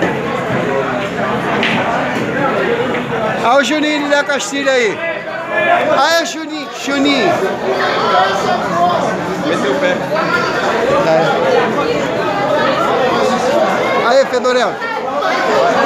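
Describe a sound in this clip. A crowd of men chatters loudly close by.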